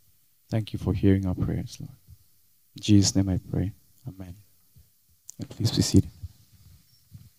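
A man speaks loudly into a microphone in a large room.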